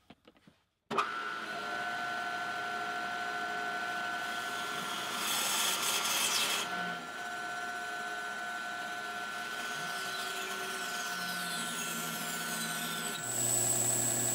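A band saw hums steadily as it cuts through a block of wood.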